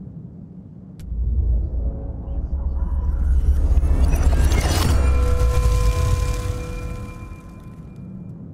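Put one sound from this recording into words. A deep rumbling swell rises and fades.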